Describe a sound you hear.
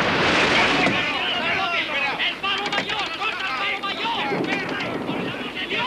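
An adult man shouts close by.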